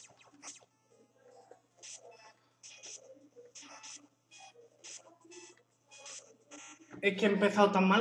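Video game sound effects chirp and blip in quick bursts.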